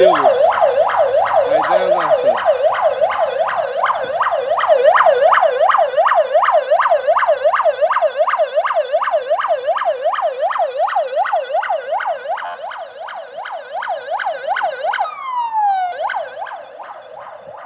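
A siren wails in a fast, rising and falling yelp nearby, then winds down.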